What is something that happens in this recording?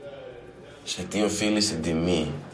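A younger man speaks quietly and seriously.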